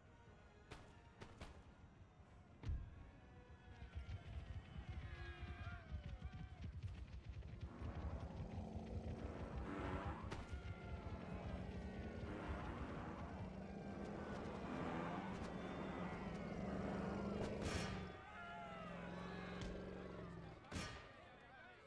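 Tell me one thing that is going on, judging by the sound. Muskets fire in sharp cracks.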